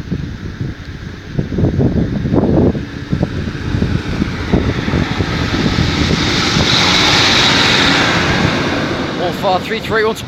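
A train approaches and rumbles past close by.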